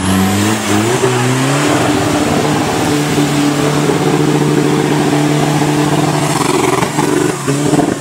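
Mud splashes and sprays under spinning tyres.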